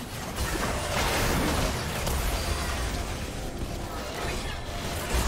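Magic spells whoosh and blast in a busy fantasy battle.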